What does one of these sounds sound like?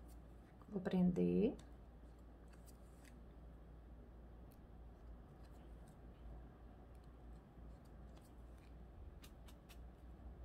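Fabric ribbon rustles softly as hands fold and handle it.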